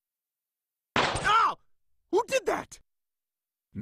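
A small boy speaks calmly.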